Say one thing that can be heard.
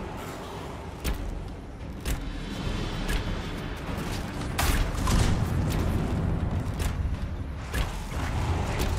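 Magic blasts crackle and boom in a fight.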